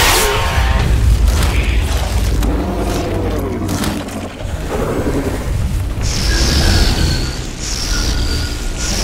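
Heavy footsteps thud on the ground.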